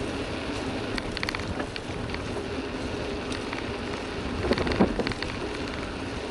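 A bicycle rattles and clicks over bumps.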